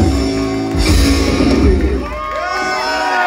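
A band plays loudly, with an upright bass thumping low.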